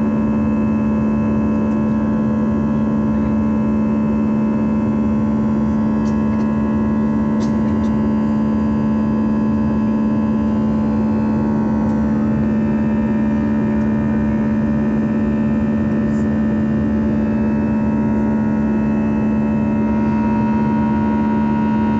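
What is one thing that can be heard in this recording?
Jet engines of an airliner roar steadily, heard from inside the cabin as the plane climbs after takeoff.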